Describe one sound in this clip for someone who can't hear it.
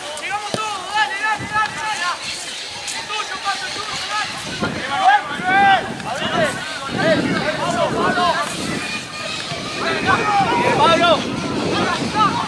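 Spectators shout and cheer from the sidelines.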